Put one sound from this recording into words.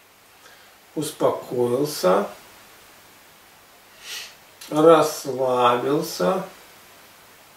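A man speaks calmly and slowly nearby.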